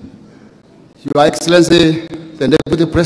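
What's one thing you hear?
A second man speaks loudly into a microphone.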